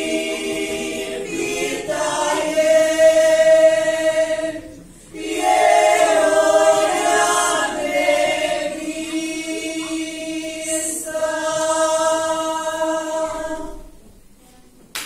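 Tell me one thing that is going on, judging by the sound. A group of women sing together in a large, echoing hall.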